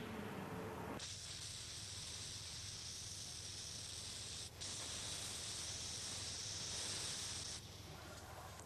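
Chalk scrapes against a board.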